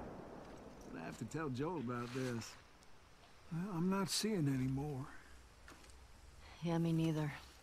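A teenage girl speaks calmly.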